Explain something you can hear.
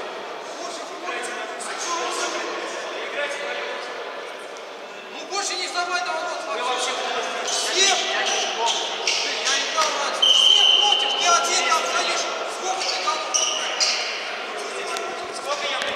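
Men and boys shout and chatter in a large echoing hall.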